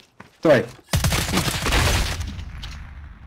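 Gunfire bursts loudly nearby.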